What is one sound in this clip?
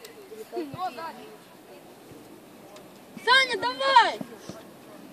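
Children shout excitedly outdoors.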